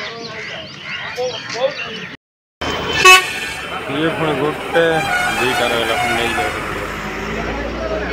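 Several men talk and call out nearby in a lively crowd.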